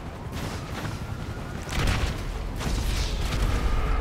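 A car explodes nearby.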